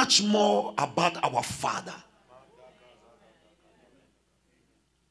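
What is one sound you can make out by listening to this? A man preaches loudly and with passion through a microphone in a large echoing hall.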